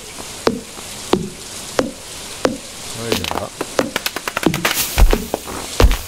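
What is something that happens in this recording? An axe chops wood with sharp, repeated knocks.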